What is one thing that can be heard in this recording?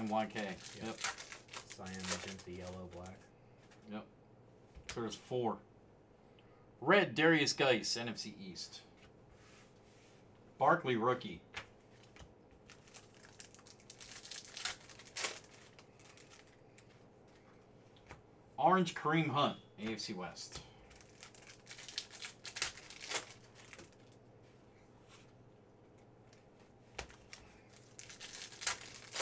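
Foil card wrappers crinkle as they are torn open.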